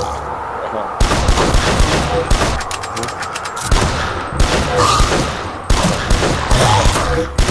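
A shotgun fires repeated loud blasts.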